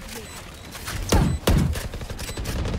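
Rifle shots crack in a quick burst.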